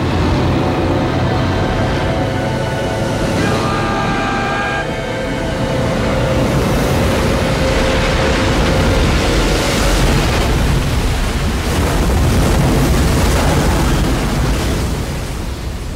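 Huge waves roar and crash in a storm.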